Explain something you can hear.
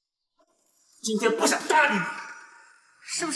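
A young man speaks coldly.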